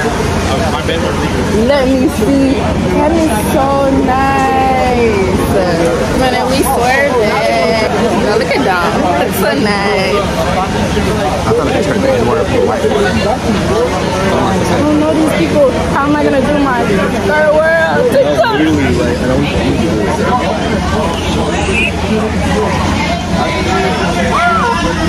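A large crowd chatters in an echoing hall.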